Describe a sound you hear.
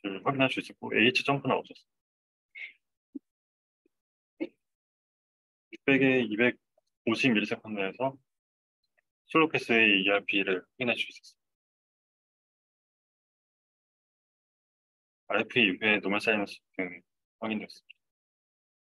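A young man speaks calmly into a microphone over an online call, pausing between phrases.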